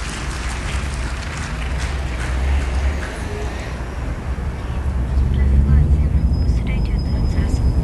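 An acoustic guitar strums.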